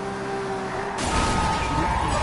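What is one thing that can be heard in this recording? A car crashes hard into debris with a loud bang.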